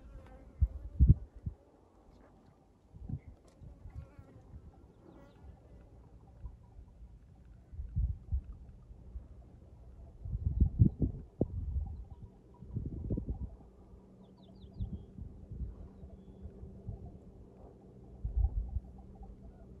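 Wind gusts buffet the microphone in bursts outdoors.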